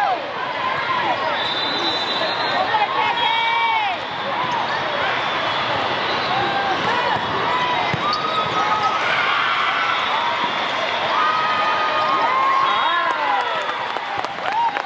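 Sneakers squeak sharply on a hard court, again and again.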